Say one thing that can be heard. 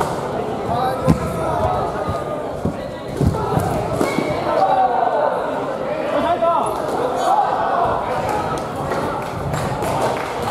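A crowd of young people chatter in a large echoing hall.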